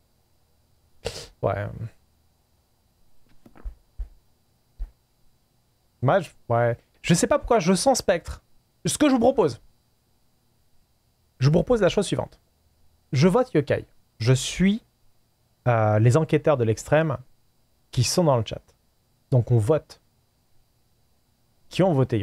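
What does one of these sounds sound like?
A man talks with animation into a close microphone, pausing often.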